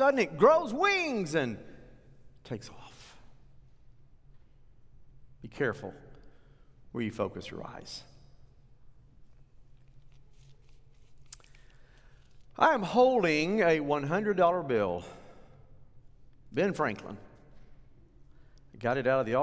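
A middle-aged man speaks with animation into a microphone, with long pauses.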